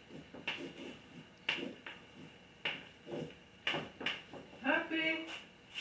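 A wooden easel knocks and bumps as it is moved.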